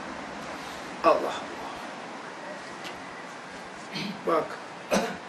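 An elderly man reads aloud in short bursts, close by.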